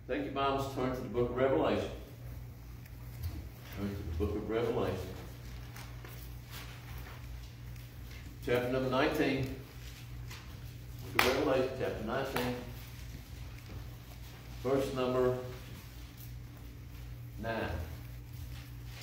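An elderly man speaks slowly in bursts with long pauses, in a room with slight echo.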